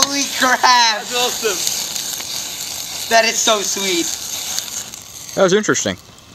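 A firework fountain hisses and crackles loudly, then dies down.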